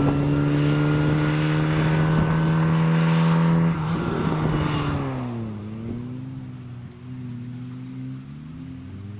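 A small car engine revs hard and steady, then drops and fades as the car pulls away.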